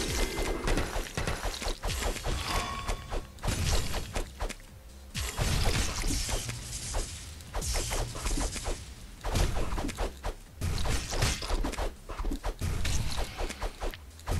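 Game sound effects of swords clashing and hits ring out.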